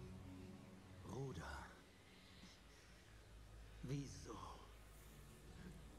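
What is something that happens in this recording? A man groans and grunts in pain close by.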